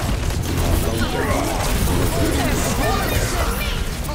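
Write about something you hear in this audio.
Game explosions boom with a deep rumble.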